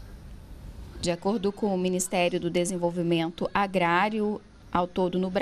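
A middle-aged woman speaks calmly up close.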